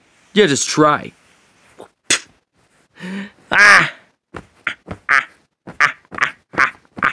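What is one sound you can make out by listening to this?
A plush toy rustles softly against a blanket as a hand moves it.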